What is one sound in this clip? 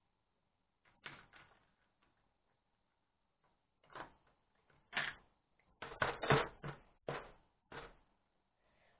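Plastic toy bricks click and clatter as they are snapped together.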